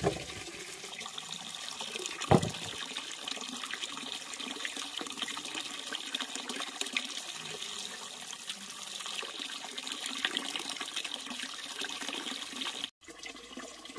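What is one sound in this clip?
Water pours steadily into a filled basin.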